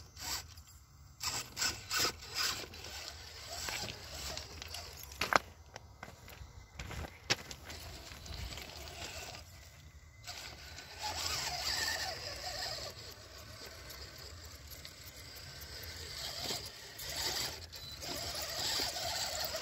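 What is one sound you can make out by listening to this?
Plastic wheels knock and scrape on loose stones.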